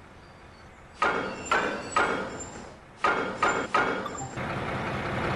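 Heavy metal couplings clank and bang together.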